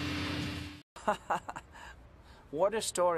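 A man speaks with amusement.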